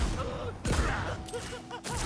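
An explosion bursts with a crackle of sparks.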